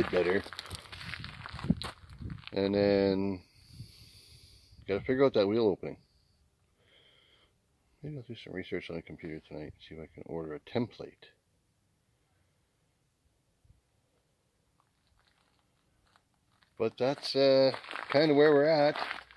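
A man talks calmly close by, pausing now and then.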